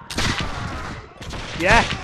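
A musket fires with a loud bang.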